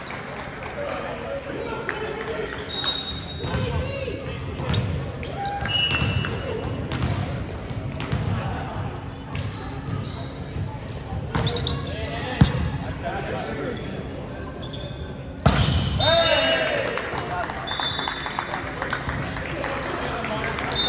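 Young men call out and shout to each other on the court.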